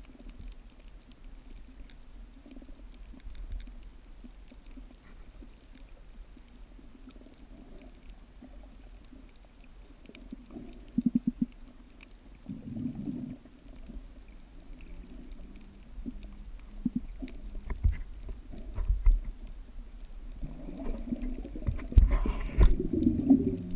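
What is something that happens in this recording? Water rumbles and sloshes in a low, muffled way underwater.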